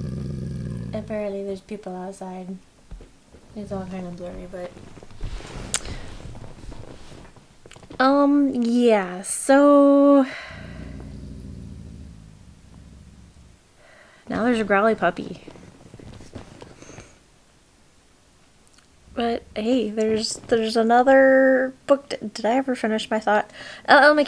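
A young woman talks close by, with animation.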